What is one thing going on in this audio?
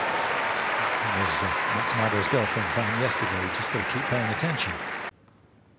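A crowd cheers and whoops.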